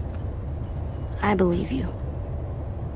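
A young boy answers quietly.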